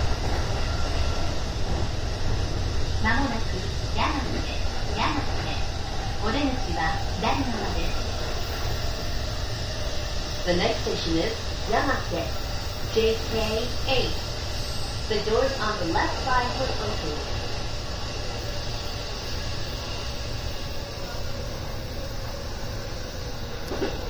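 An electric commuter train rumbles along rails through a tunnel.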